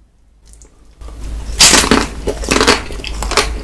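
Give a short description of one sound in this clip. A young man bites into a crunchy chocolate-coated ice cream bar close to a microphone.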